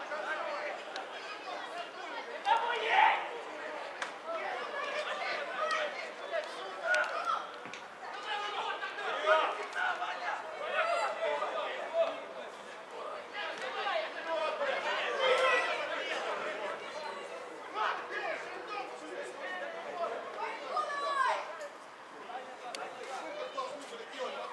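Men shout to each other across an open outdoor field, heard from a distance.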